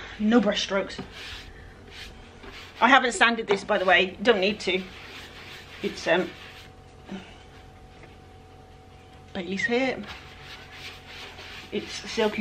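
A brush scrubs against a wooden surface.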